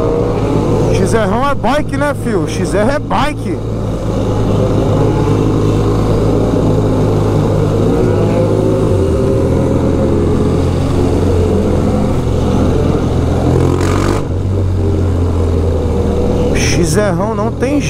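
Another motorcycle passes close by, its engine whining.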